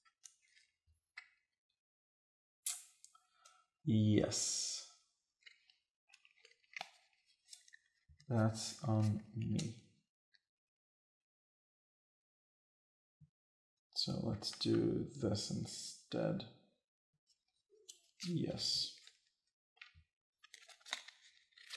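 Game pieces and cards click and rustle on a table.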